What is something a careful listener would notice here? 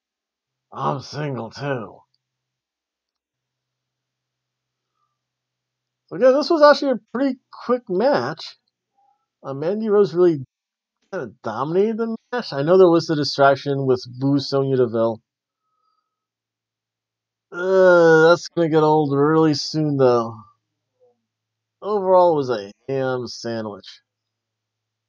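A man talks with animation close to a microphone, in short bursts with pauses.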